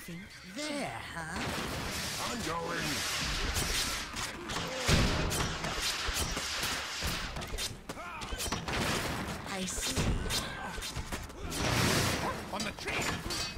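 Game sound effects of clashing weapons and battle noises play.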